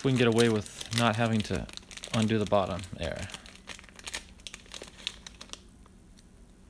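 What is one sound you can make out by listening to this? A plastic sleeve crinkles as it is pulled off a card.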